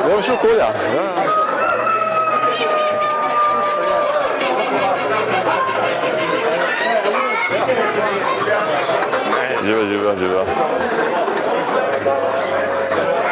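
Several men talk nearby in a busy echoing hall.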